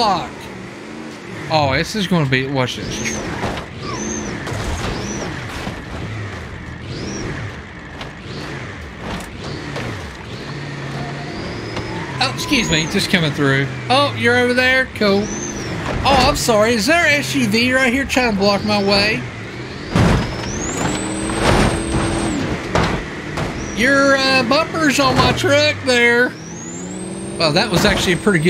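A monster truck engine roars and revs.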